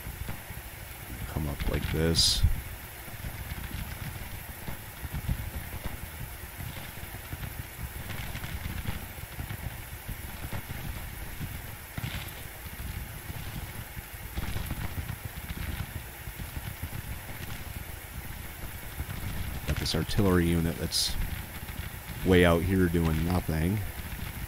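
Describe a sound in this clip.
Musket fire crackles in scattered volleys.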